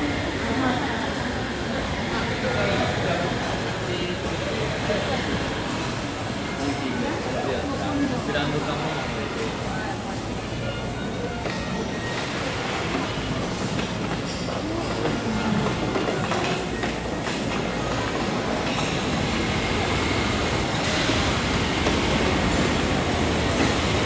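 A crowd murmurs with indistinct chatter, echoing under a high roof.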